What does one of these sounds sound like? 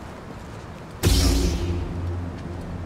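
A lightsaber ignites with a sudden buzzing whoosh.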